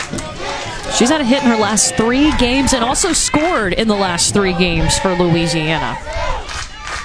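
A crowd of spectators chants and cheers loudly outdoors.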